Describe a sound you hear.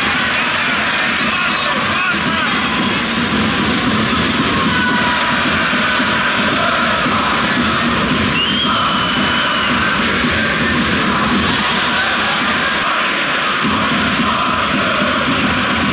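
A huge stadium crowd sings and chants loudly, echoing in a vast open space.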